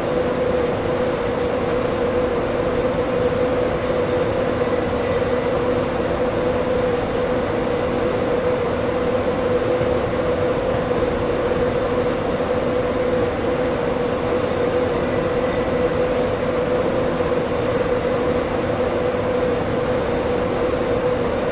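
An electric locomotive hums steadily as it rolls along.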